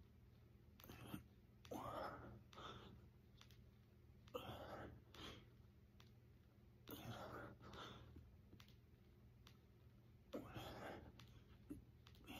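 A middle-aged man grunts and counts in short bursts during push-ups.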